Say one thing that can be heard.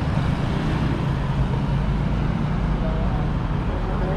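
A scooter hums past nearby.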